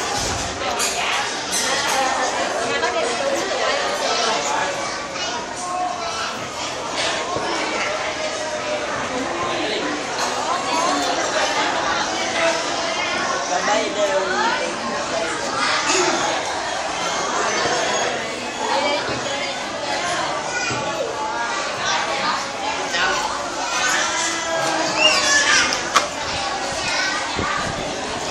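Young children and adults chatter and call out nearby in a busy, echoing room.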